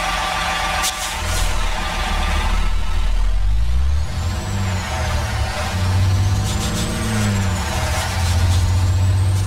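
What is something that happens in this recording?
A truck engine revs and roars as it pulls away.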